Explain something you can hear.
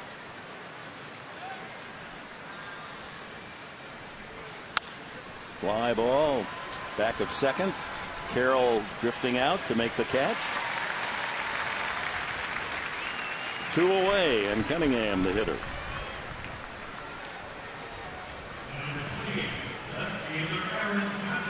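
A stadium crowd murmurs steadily throughout.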